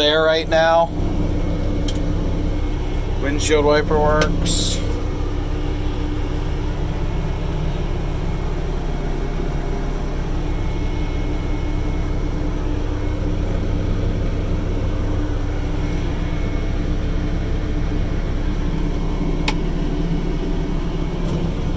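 A diesel engine idles with a steady low rumble.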